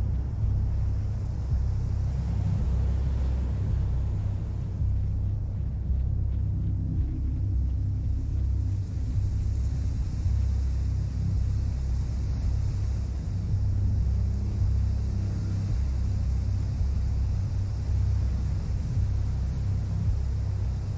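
Footsteps crunch softly over grass outdoors.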